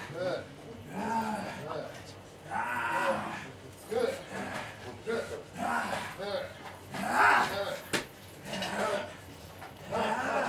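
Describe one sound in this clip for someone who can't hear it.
A small crowd of spectators shouts close by.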